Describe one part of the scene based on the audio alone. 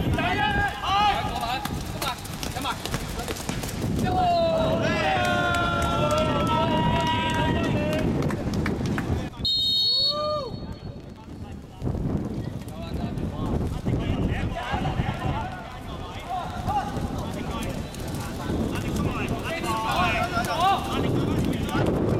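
Young men shout and call out to each other across an open court.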